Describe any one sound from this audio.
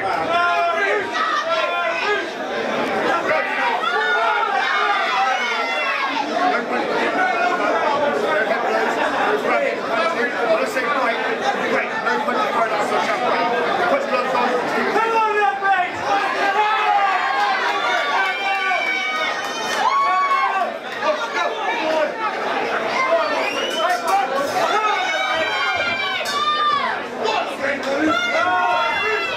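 A crowd chatters and cheers loudly in a large echoing hall.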